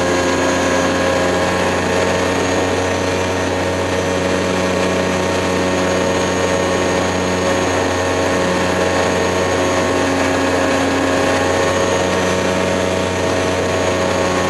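An aircraft engine drones steadily close by.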